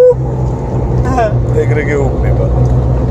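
A man speaks casually inside the car.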